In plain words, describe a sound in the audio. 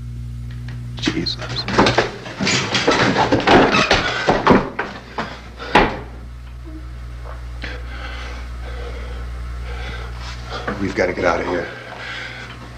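A young woman cries out and sobs in distress close by.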